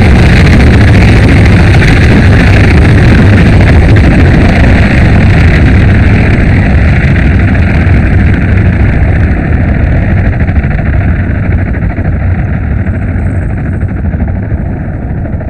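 A group of helicopters thunders overhead with loud, thumping rotors and slowly fades into the distance.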